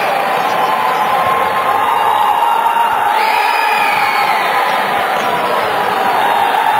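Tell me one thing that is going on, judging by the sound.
A crowd cheers steadily in a large echoing hall.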